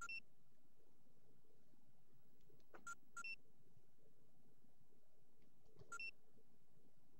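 Short electronic menu beeps chime a few times.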